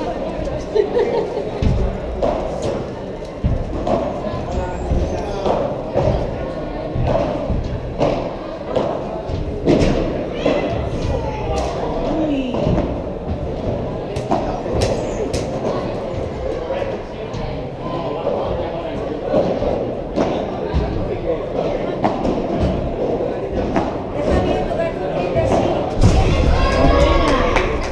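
Paddle rackets strike a ball with sharp pops in a large echoing hall.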